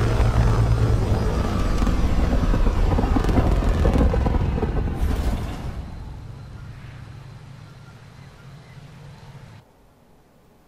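A spacecraft's engines roar loudly and then fade away.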